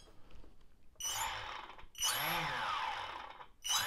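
A small electric motor whirs briefly, speeding up and slowing down.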